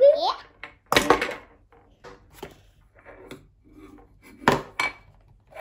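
A plastic box knocks on a table.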